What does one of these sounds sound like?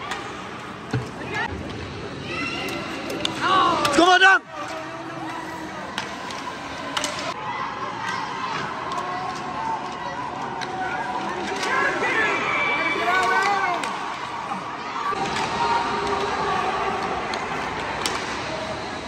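Hockey sticks clack against a puck and on the ice.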